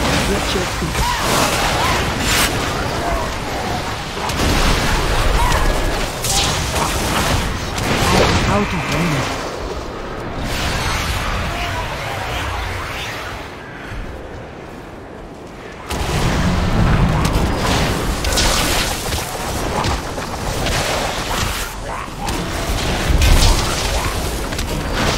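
Spell effects and combat sounds clash and crackle in a video game.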